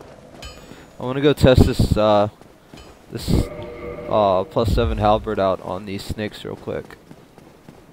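A young man talks animatedly close to a microphone.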